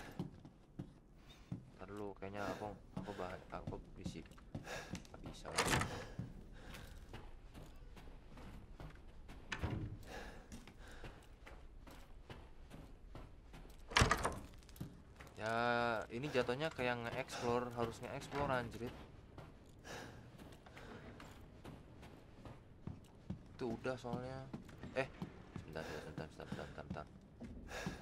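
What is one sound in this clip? Footsteps tread slowly across a wooden floor.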